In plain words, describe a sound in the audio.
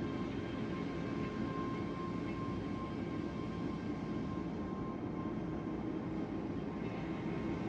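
A warship's engines rumble steadily.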